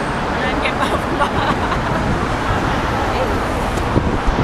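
A crowd of pedestrians murmurs and walks past.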